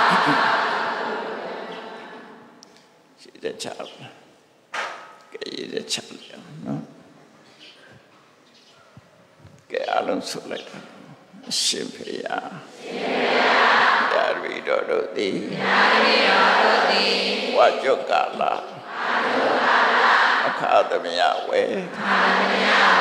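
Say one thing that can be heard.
An elderly man speaks calmly into a microphone, heard through a loudspeaker.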